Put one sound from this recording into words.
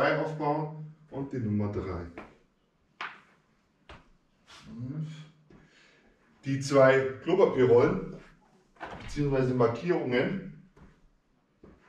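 A man speaks calmly and explains, close by.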